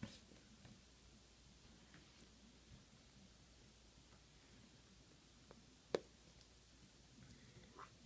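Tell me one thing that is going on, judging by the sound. Fingertips tap softly on a touchscreen.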